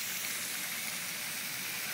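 Water hisses steadily as it sprays from a leak in a hydrant.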